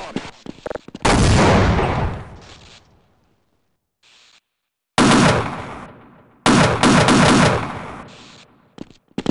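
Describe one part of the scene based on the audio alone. A heavy mounted machine gun fires loud bursts.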